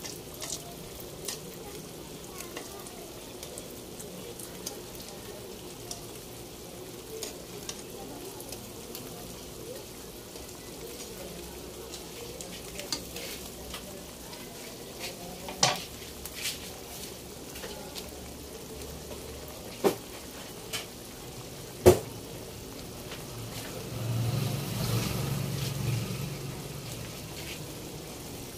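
A thick sauce simmers and bubbles softly in a pan.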